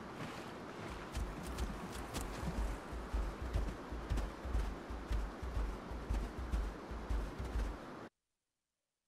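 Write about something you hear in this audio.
Heavy footsteps thud steadily on the ground.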